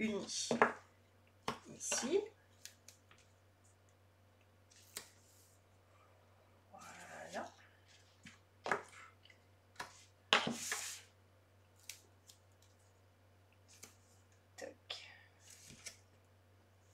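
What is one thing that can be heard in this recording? Paper rustles and slides across a table.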